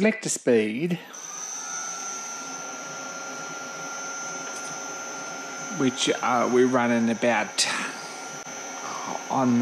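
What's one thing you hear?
An electric motor starts and hums steadily.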